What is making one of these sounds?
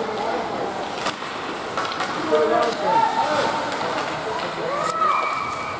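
Spectators call out and shout in an echoing rink.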